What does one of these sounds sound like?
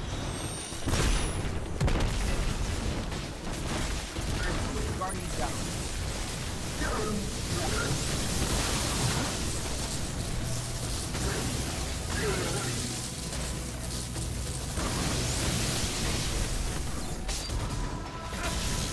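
Electric energy crackles and explodes loudly.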